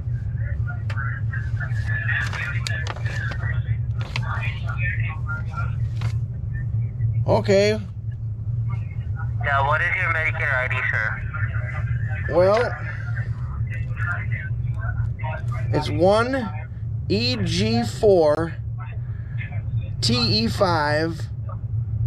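A middle-aged man talks close by.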